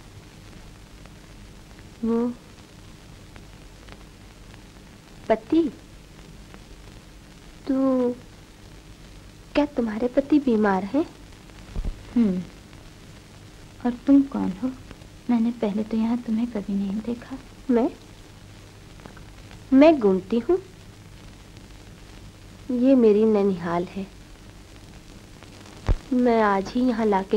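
An old recording hisses and hums faintly and steadily.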